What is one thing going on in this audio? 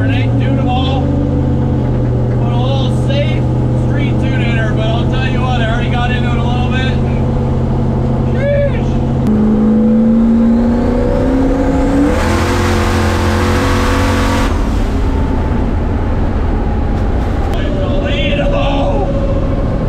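A car engine drones and revs.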